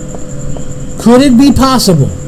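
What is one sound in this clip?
A man speaks loudly and with animation into a microphone.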